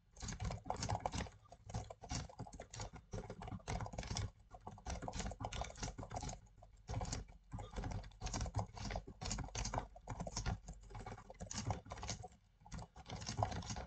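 Keys clatter fast on a computer keyboard.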